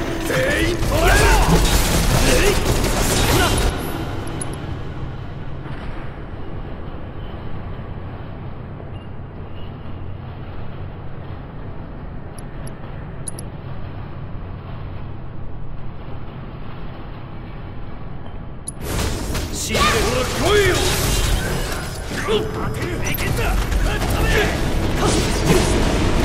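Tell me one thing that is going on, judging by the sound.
Swords clash and metal clangs in a fast fight.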